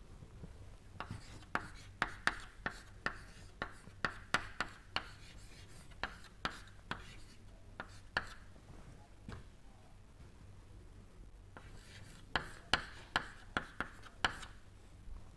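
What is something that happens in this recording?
Chalk taps and scrapes on a blackboard in quick strokes.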